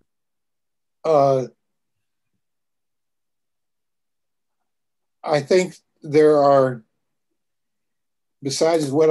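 An elderly man speaks calmly in short phrases over an online call.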